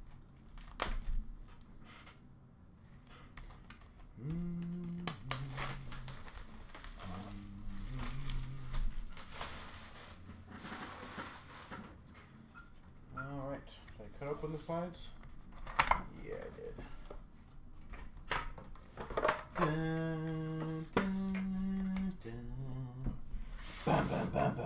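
A cardboard box rubs and taps as hands turn it over.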